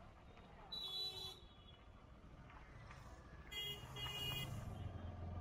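A vehicle horn beeps a few times nearby.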